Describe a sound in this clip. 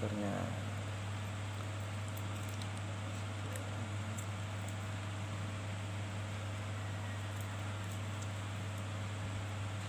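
Plastic packaging crinkles faintly.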